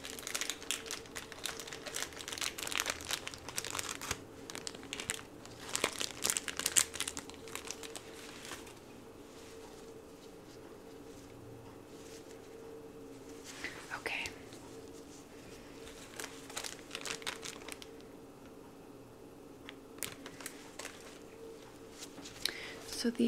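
Fabric rustles and crinkles close by.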